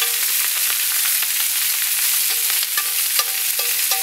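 A spatula scrapes and turns food on a grill.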